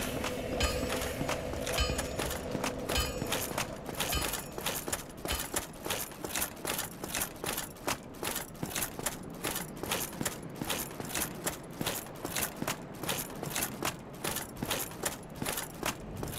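Heavy footsteps run steadily on stone.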